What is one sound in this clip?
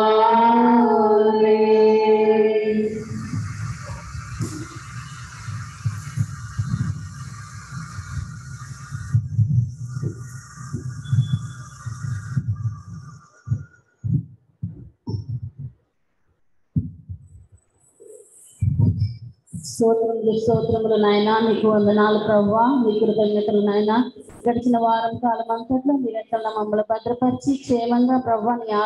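A woman sings loudly into a microphone, heard through an online call.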